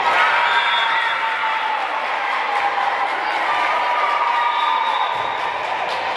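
Sneakers squeak on a court floor in a large echoing hall.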